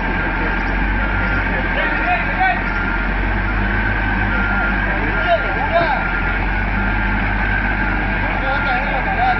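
A wheel loader's diesel engine rumbles and strains close by.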